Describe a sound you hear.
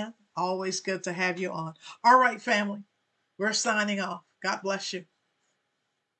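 A woman speaks warmly and with animation through a microphone.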